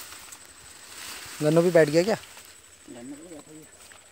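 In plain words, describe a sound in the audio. A stick scrapes and pokes into wet soil close by.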